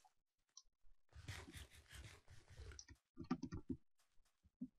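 Crunchy chewing sounds of someone eating come in quick bursts.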